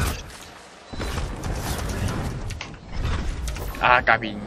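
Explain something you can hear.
A powerful energy blast roars and crackles.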